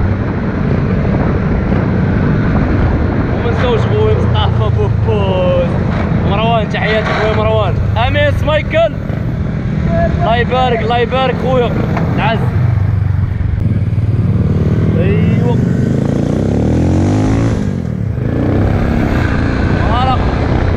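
A motorcycle engine revs loudly nearby.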